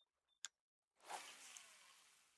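A fishing rod swishes through the air in a cast.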